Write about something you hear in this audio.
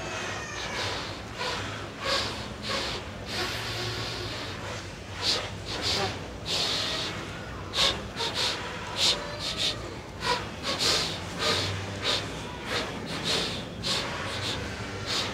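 Saxophone keys clack under players' fingers.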